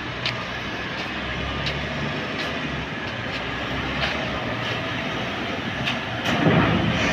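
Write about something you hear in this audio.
A heavy excavator engine rumbles steadily outdoors.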